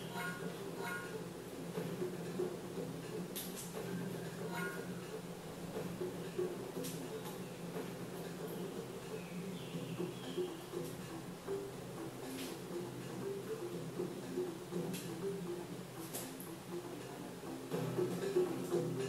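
Video game music plays steadily throughout.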